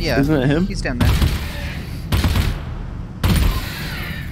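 A gun fires several loud shots.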